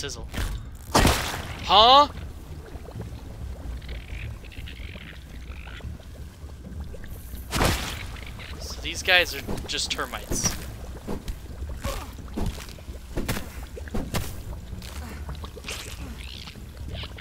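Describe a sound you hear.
A club strikes an ant creature with heavy thuds.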